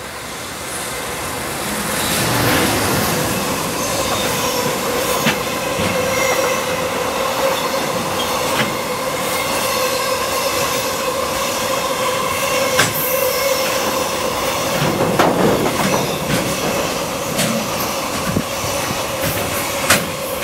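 An electric locomotive's motor whines steadily.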